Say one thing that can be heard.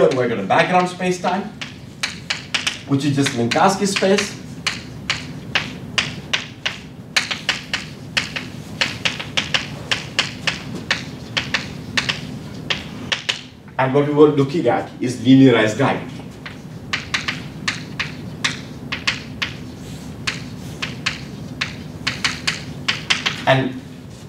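A man speaks calmly in a room with a slight echo.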